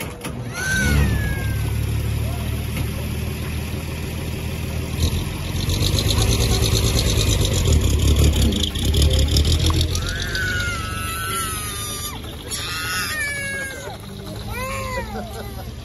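A steam engine's motor rumbles low and steady.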